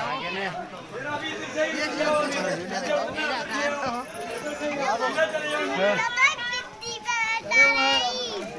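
A crowd of men and women talk loudly all around, close by.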